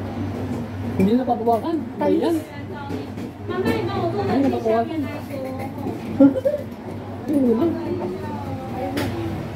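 A middle-aged woman speaks nearby in a casual tone.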